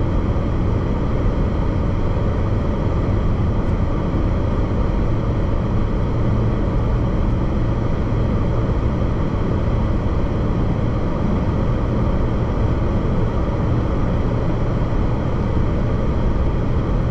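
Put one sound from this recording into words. Road noise rumbles steadily inside a car driving fast on a highway.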